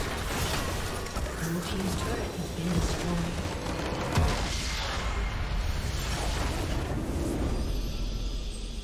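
Game spells and explosions crash and whoosh.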